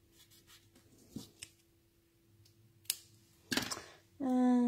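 Scissors snip through paper.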